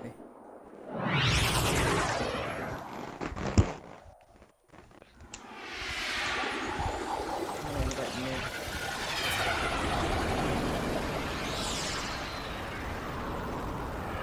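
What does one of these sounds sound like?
A spaceship engine roars past with a rushing whoosh.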